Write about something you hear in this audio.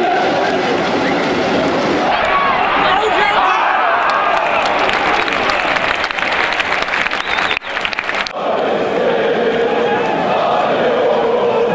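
A large stadium crowd chants and sings loudly together.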